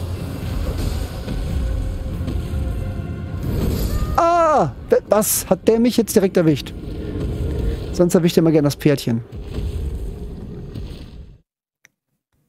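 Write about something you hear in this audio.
A dragon breathes fire with a deep, steady roar.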